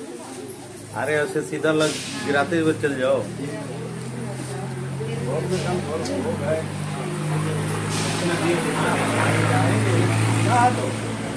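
Women talk close by.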